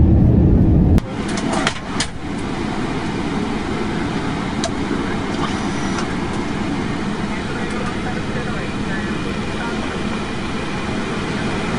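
An aircraft engine hums more quietly and steadily.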